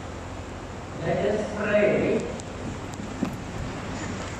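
A man speaks briefly through a microphone in a large echoing hall.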